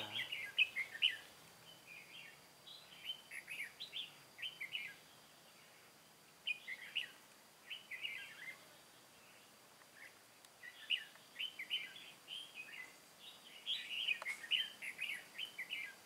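A small bird chirps and twitters in quick bursts close by.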